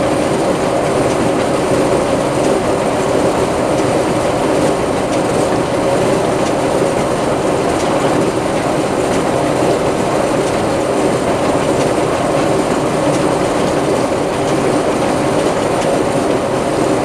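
A tractor engine rumbles steadily up close.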